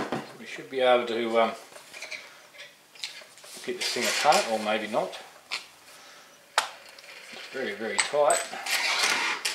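A small metal motor clicks and rattles as hands turn it.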